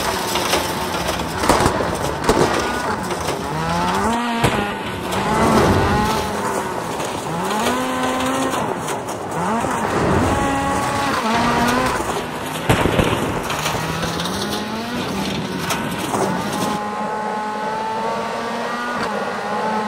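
Tyres skid and crunch over gravel.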